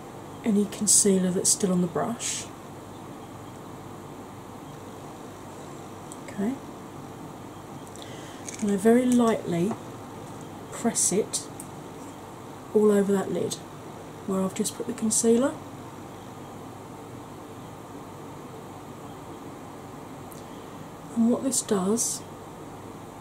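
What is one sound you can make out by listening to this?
A woman speaks softly, close to the microphone, in short phrases.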